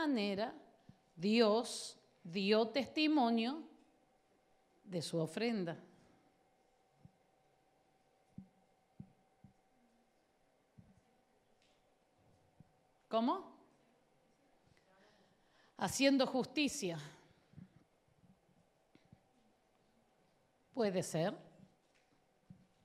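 A woman speaks with animation through a microphone, in short bursts with pauses.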